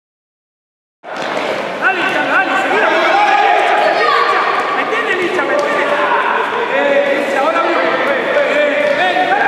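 Spectators shout and cheer in an echoing indoor hall.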